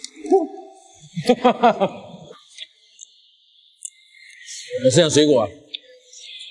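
A second young man laughs loudly, close by.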